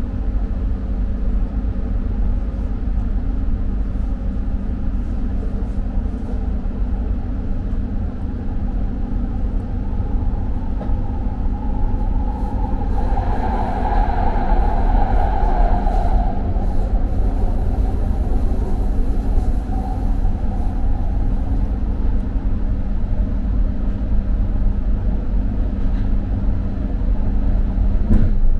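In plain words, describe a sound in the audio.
A train hums and rumbles steadily along the rails.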